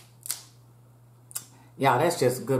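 Crab shells crack and crunch in a woman's hands.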